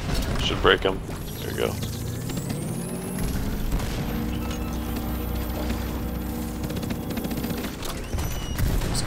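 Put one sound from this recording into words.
An energy weapon fires a steady humming beam.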